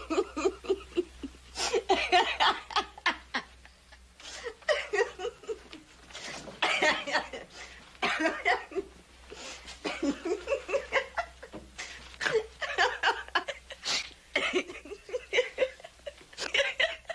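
A young woman laughs loudly and giggles.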